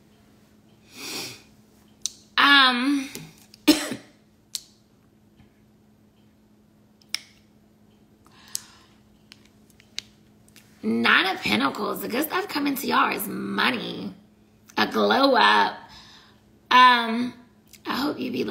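A woman speaks close to the microphone, calmly and then with feeling.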